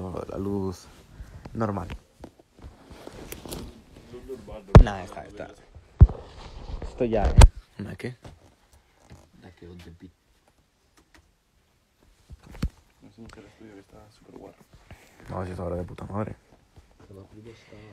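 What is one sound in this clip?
A young man talks close to a phone microphone, casually and with animation.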